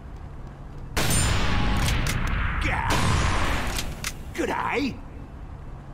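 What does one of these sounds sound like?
A sniper rifle fires loudly in a video game.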